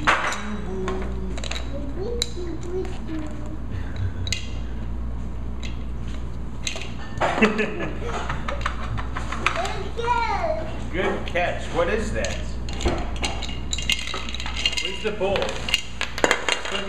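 Plastic blocks clack and knock together.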